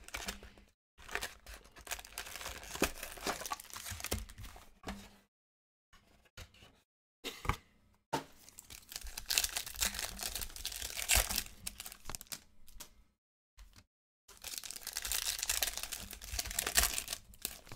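Foil wrappers crinkle and tear as packs are opened by hand.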